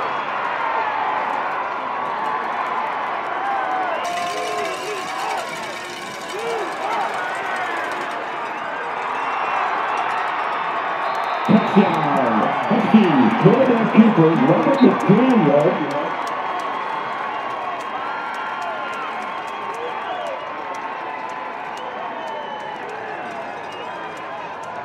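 A crowd cheers and roars outdoors.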